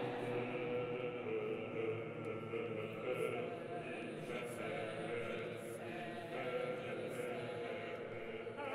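A choir sings slowly in a large echoing hall.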